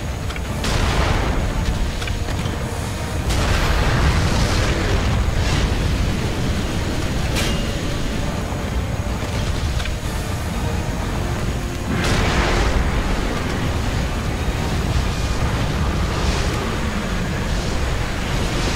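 Sword slashes whoosh and crack in short bursts.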